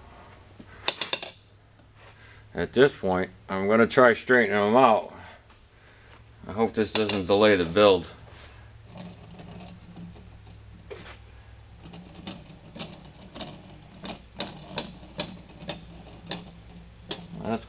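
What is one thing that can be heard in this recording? Thin metal strips tap and click against glass.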